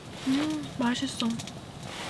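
A wood fire crackles in a small stove.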